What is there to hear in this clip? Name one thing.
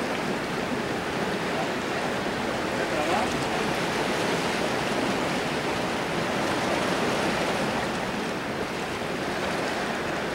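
Waves wash and splash against rocks close by.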